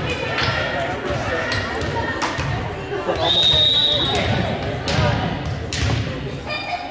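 Young women call out and chatter in a large echoing gym.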